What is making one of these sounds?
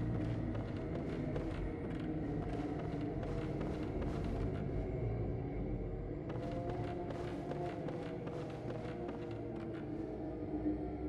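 Footsteps thud on creaking wooden planks.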